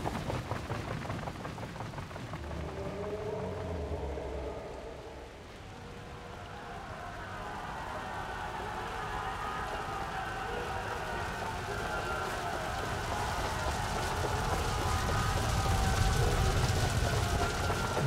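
A fire roars and rumbles.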